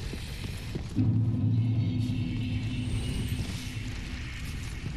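A deep magical tone swells up suddenly and fades away.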